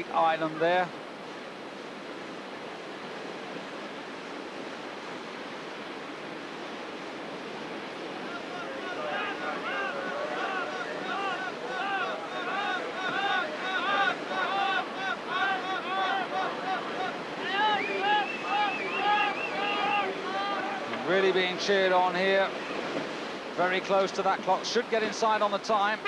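Whitewater rushes and churns steadily.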